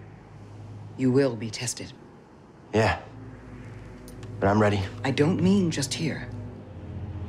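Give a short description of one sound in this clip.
A woman speaks calmly in a low voice.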